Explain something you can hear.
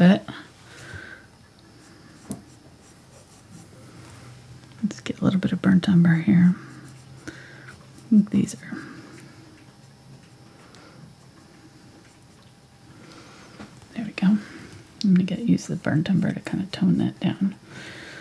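A paintbrush strokes softly across canvas.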